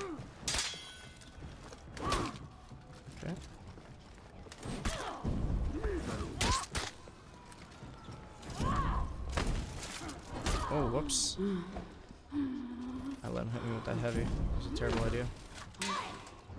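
Steel blades clash and ring in a sword fight.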